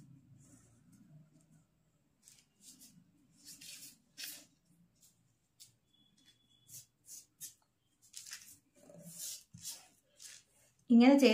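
Paper and cloth rustle and crinkle under hands.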